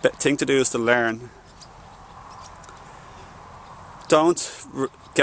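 A young man talks with animation close to the microphone, outdoors.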